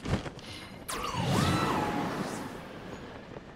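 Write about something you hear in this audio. A swirling magic blast whooshes loudly and fades.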